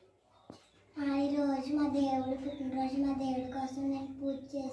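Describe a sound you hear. Young children sing together close by.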